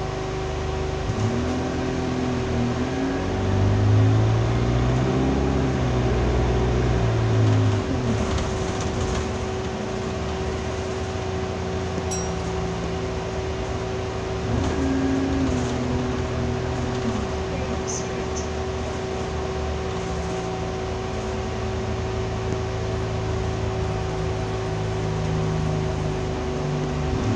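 A bus rattles as it drives.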